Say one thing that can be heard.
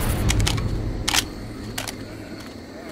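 A pistol clicks and clacks as it is reloaded.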